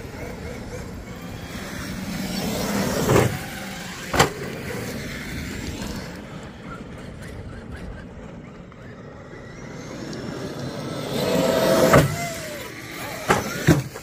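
A small electric motor of a radio-controlled car whines as the car speeds over gravel.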